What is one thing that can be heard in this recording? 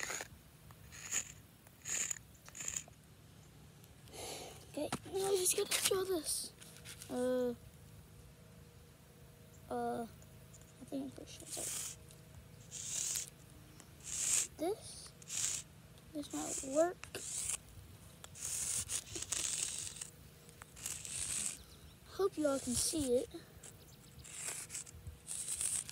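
Chalk scrapes on pavement in short strokes.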